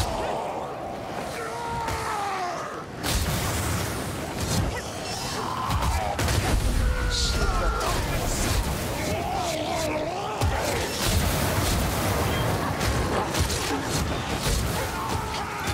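Creatures snarl and screech in a fight.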